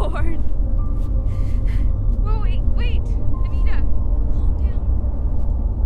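A young woman speaks anxiously and pleadingly close by.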